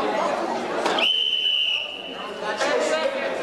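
A referee blows a whistle once, long and shrill.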